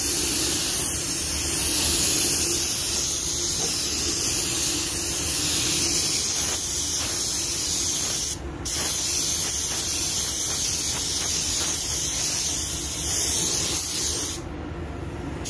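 A spray gun hisses steadily in short bursts.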